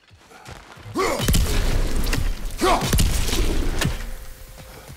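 Sharp blasts burst close by, one after another.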